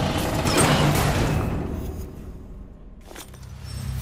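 Footsteps crunch over broken glass on a hard floor.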